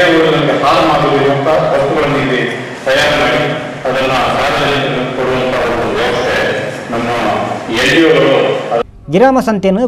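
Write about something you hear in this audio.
A man speaks through a microphone and loudspeakers.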